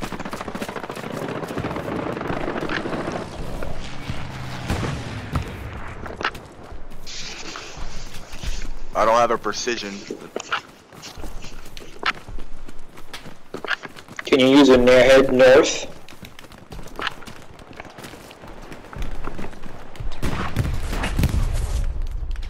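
Footsteps run quickly over grass and earth.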